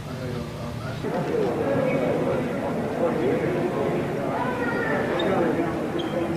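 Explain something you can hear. Men talk in a large echoing hall.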